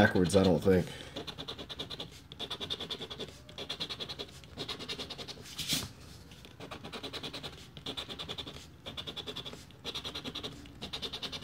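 A coin scratches rapidly across a paper card in short bursts.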